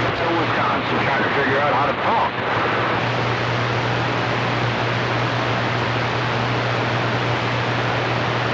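Radio static hisses steadily from a loudspeaker.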